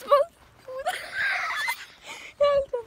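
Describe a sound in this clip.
A young girl laughs loudly, close by.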